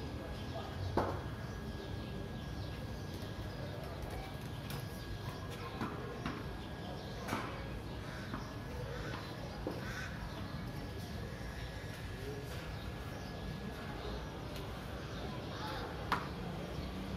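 A wooden bat knocks sharply against the hard ground now and then.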